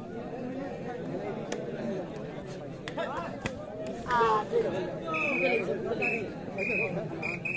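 A large outdoor crowd chatters and cheers loudly.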